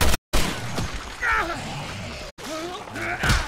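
A man groans in pain close by.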